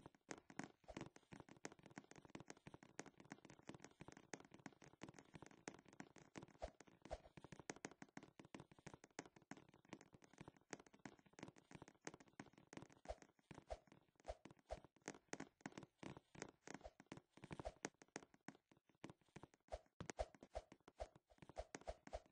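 Footsteps patter quickly across hard floors.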